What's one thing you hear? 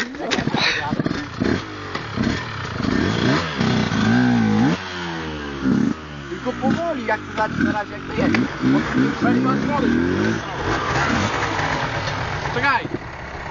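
A motorbike engine revs up and down nearby.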